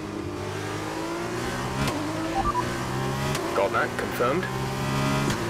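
A racing car engine roars at high speed, its pitch dropping briefly as it shifts up through the gears.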